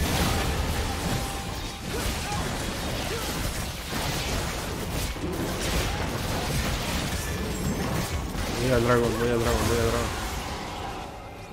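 Magic blasts crackle and burst in a fast, noisy fight.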